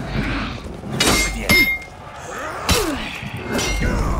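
Steel blades clash and ring in sharp hits.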